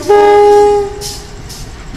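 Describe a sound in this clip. A locomotive horn blasts loudly once.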